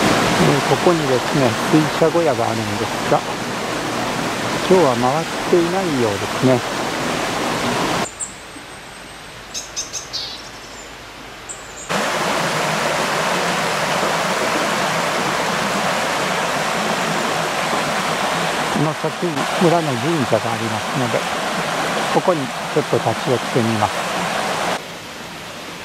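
Water rushes and splashes steadily over a small weir.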